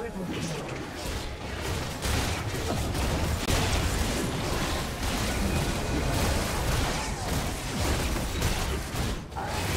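Game combat effects clash and burst continuously.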